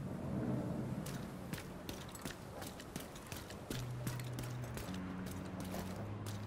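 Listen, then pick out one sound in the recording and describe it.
Footsteps thud quickly on pavement.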